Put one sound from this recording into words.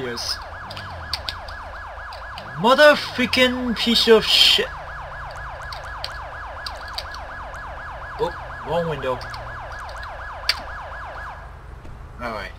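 A police siren wails close by.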